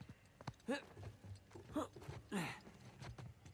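Hands and feet knock against wooden shelves while climbing.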